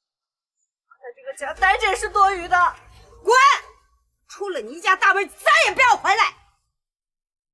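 An elderly woman shouts sharply close by.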